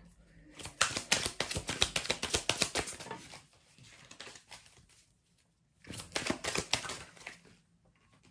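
A rattle shakes in quick, crisp bursts close by.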